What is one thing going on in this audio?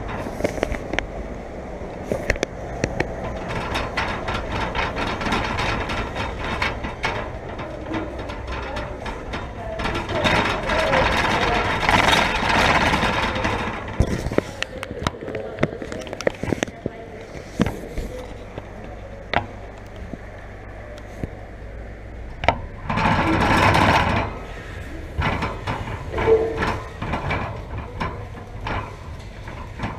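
A wire shopping cart rattles and clatters as it rolls.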